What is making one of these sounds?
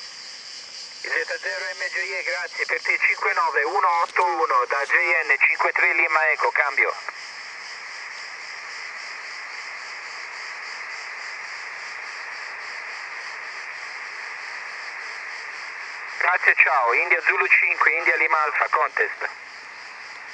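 A man's voice comes thin and crackly through a ham radio transceiver's speaker.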